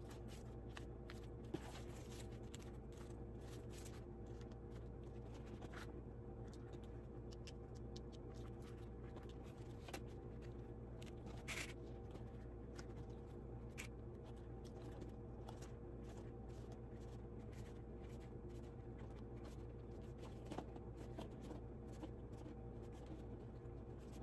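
Stiff leather is folded and creased by hand with soft rustles and scrapes.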